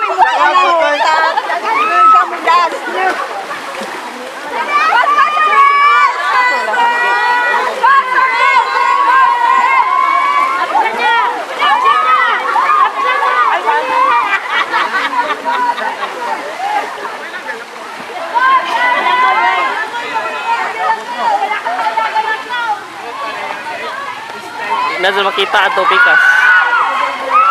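A group of young men and women shout and cheer nearby, outdoors.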